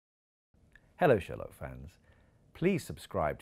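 A middle-aged man speaks with animation close to a clip-on microphone.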